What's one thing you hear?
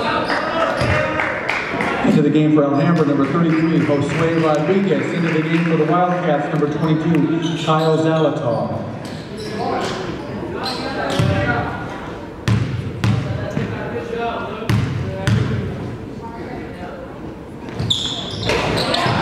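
Young people call out and chatter in the background.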